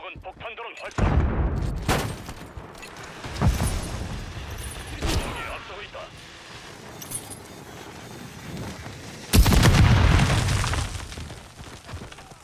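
Heavy blasts boom and rumble.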